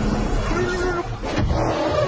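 A young man shouts in alarm.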